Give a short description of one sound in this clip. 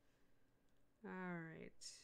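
A middle-aged woman speaks calmly over a microphone.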